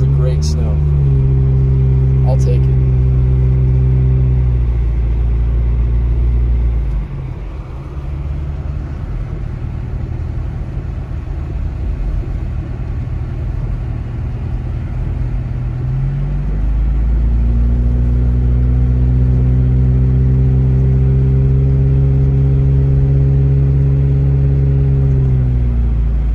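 A car engine hums steadily, rising and falling.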